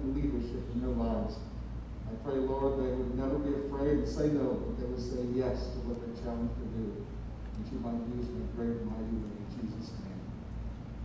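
A man speaks slowly and solemnly through a microphone in a large echoing hall.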